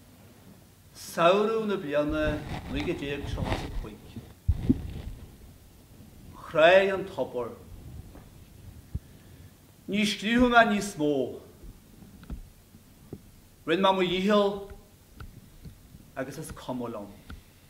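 An elderly man speaks calmly into a microphone, in a hall with some echo.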